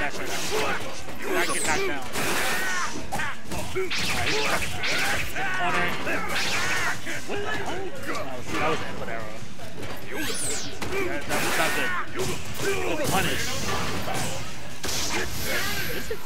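Punches and kicks land with sharp thuds and smacks.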